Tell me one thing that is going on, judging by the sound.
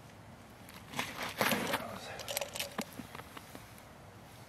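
A man's clothing rustles as he handles a wooden stick over the ice.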